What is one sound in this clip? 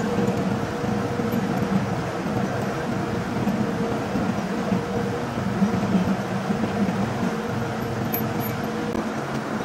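A steel chain clinks against a steel part.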